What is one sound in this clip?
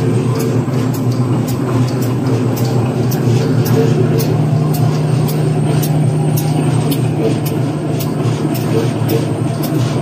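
A machine hums and rumbles steadily.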